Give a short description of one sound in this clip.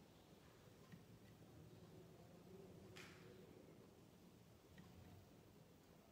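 A ceiling fan whirs softly and steadily.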